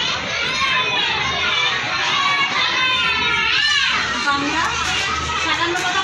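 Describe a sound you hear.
A group of young children recite loudly in unison, close by.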